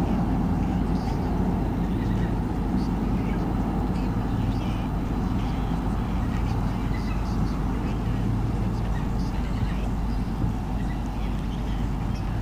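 A bird at a nest gives faint short chirps.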